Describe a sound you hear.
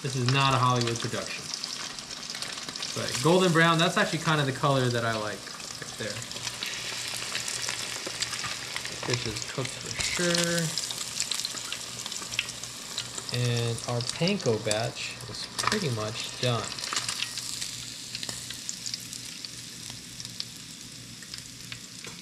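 Hot oil sizzles and bubbles steadily in a pot.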